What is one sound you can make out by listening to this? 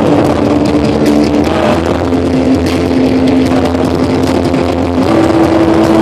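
A young man sings into a microphone.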